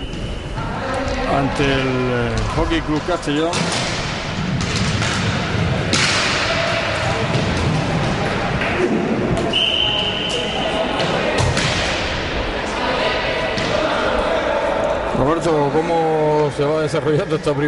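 Hockey sticks clack against a ball and against each other.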